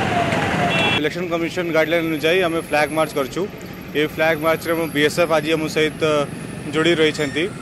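A man speaks calmly into a microphone close by.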